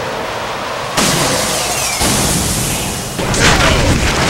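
A bright beam erupts with a roaring burst.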